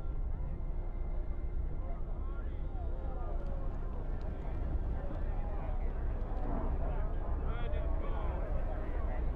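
A strong wind howls and rumbles steadily.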